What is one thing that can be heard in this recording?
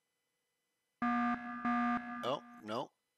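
An electronic warning tone sounds in short steady bursts.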